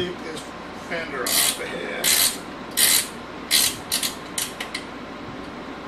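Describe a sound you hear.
Metal parts click and clink sharply close by.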